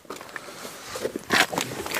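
A person climbs into a car seat with a rustle and thump.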